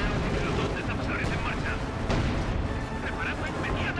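Tank engines rumble and clank.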